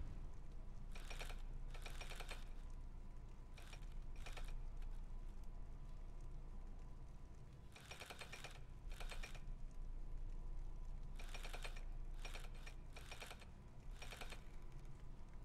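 Metal dials click and whir as they turn.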